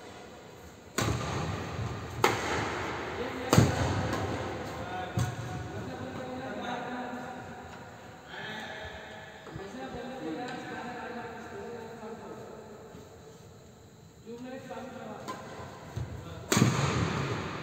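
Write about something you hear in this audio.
Badminton rackets smack a shuttlecock in a large echoing hall.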